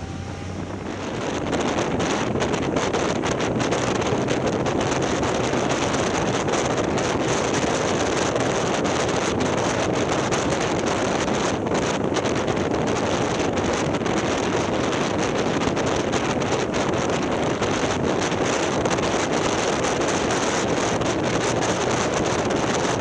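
Wind rushes loudly past, outdoors at speed.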